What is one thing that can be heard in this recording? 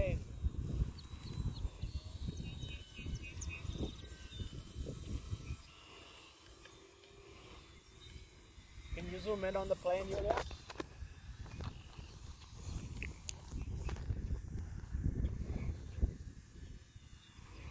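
A model airplane motor buzzes faintly overhead.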